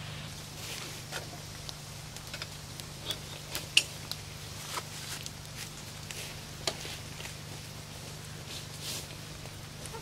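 Metal parts of a lantern click and rattle.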